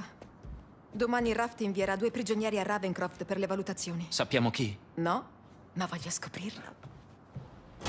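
A young woman speaks warmly and with animation, close by.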